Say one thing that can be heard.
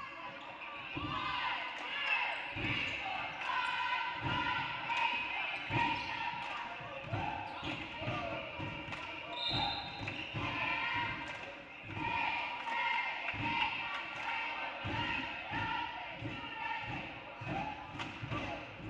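A basketball bounces on a wooden gym floor, echoing in a large hall.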